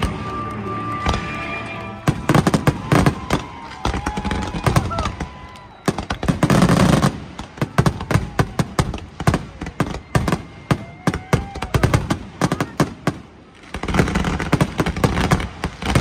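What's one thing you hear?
Firework rockets whistle and hiss as they shoot upward.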